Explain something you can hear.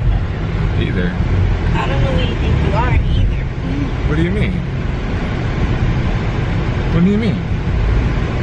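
A young man talks with animation close by.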